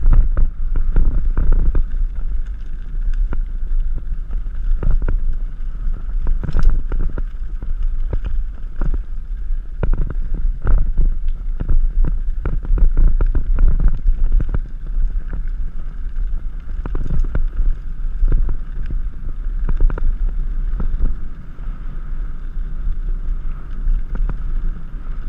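Wind rumbles steadily against a fast-moving bike.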